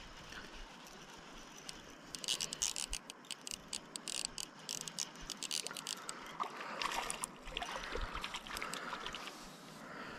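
A river flows gently over stones.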